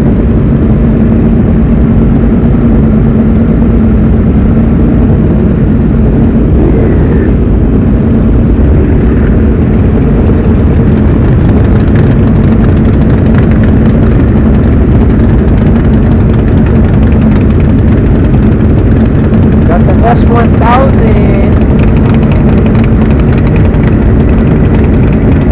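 Many motorcycle engines idle and rumble loudly close by.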